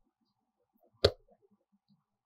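Plastic pieces knock softly as they are set down.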